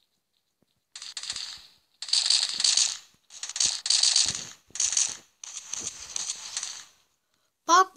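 Gunshots rattle in short bursts.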